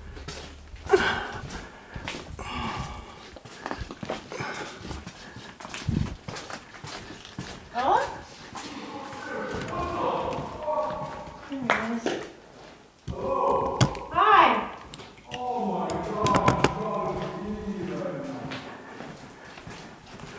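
A young woman talks nearby in an echoing space.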